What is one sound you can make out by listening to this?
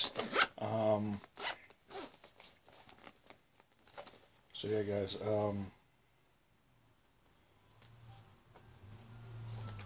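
A hard plastic case clicks and rustles in a man's hands.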